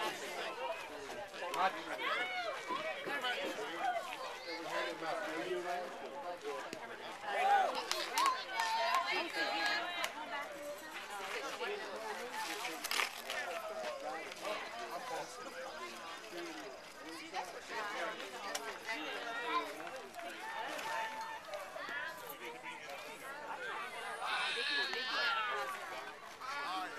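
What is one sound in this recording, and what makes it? Men and children talk and call out nearby outdoors.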